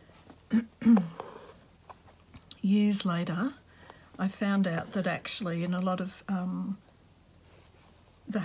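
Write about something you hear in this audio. Cloth rustles softly as it is handled.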